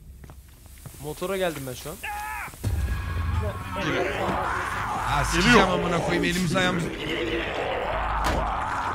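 Several young men talk and exclaim excitedly over an online call.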